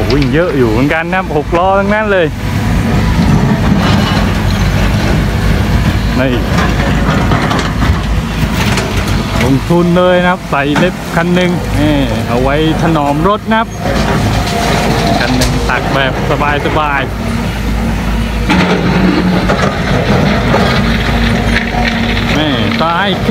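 Diesel hydraulic excavators work under load, engines droning.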